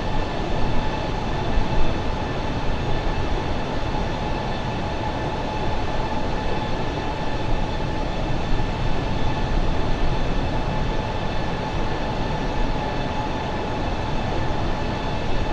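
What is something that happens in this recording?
A jet airliner's engines roar and whine steadily at cruising height.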